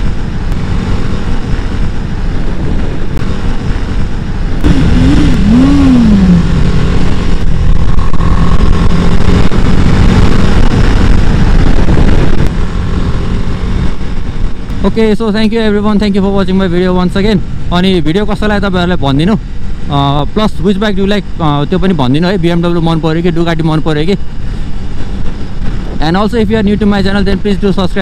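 A motorcycle engine hums and revs hard, its pitch rising and falling as it shifts gears.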